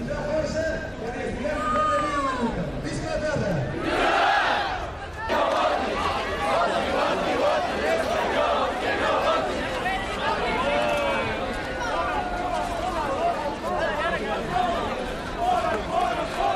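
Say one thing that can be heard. A large crowd of men and women talks and shouts outdoors.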